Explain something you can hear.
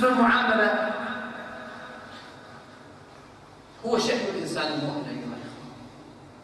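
An elderly man speaks calmly into a microphone, with echo as in a large hall.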